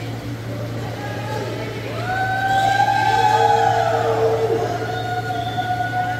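Electric wheelchair motors whine as they speed up and slow down in a large echoing hall.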